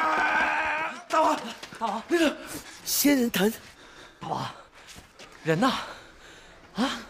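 A man shouts with alarm.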